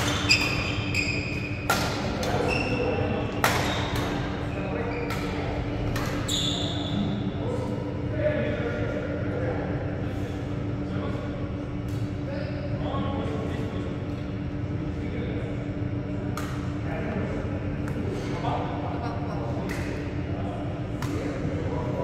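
Shuttlecocks are struck sharply by rackets, echoing in a large hall.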